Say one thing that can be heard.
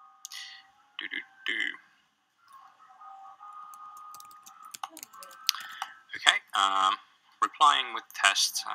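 A young man speaks through a microphone, heard over a computer.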